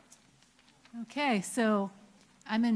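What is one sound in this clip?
A woman speaks through a loudspeaker in a large echoing hall.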